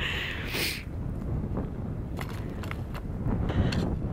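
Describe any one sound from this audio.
Snow crunches and scrapes as someone slides over it.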